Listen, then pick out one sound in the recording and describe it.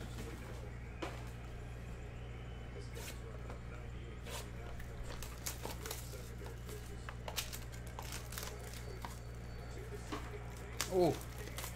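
Cardboard and foil wrappers rustle and crinkle as hands open card packs.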